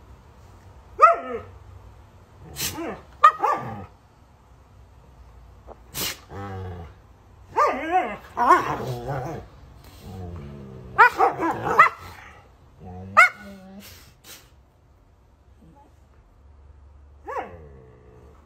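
Huskies howl and grumble in long, bending whines close by.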